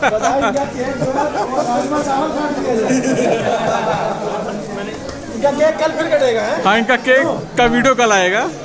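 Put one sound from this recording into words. Several men talk and laugh loudly close by.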